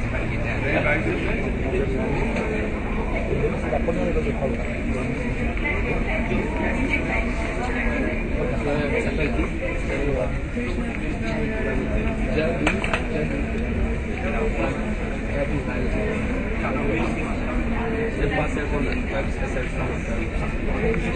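A crowd of men and women murmurs and chats in a large echoing hall.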